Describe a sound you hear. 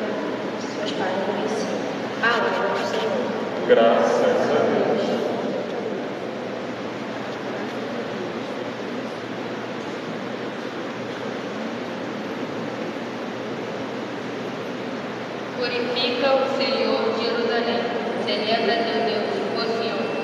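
A group of voices sings together in a large echoing hall.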